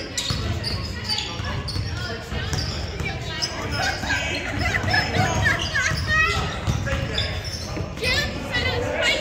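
Young players shout and call out across the echoing hall.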